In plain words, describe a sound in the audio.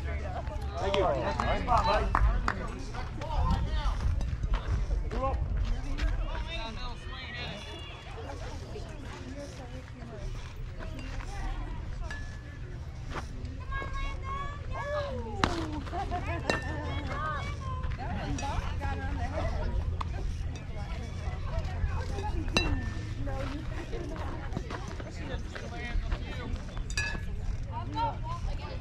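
Young players call out and chatter across an open field.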